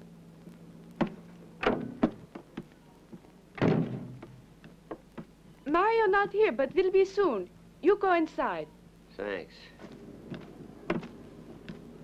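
Footsteps knock on wooden boards.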